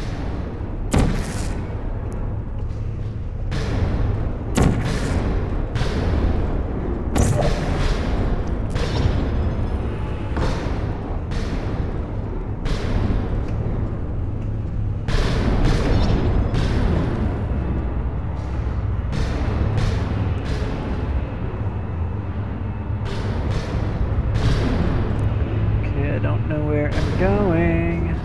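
A portal gun fires with sharp zaps.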